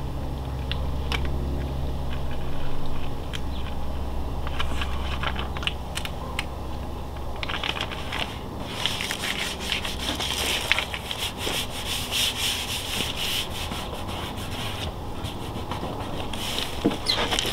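Fingers rub and peel at a plastic sticker on a hard surface.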